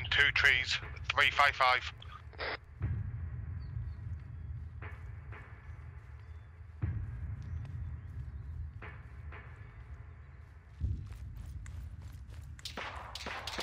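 A rifle fires sharp shots close by.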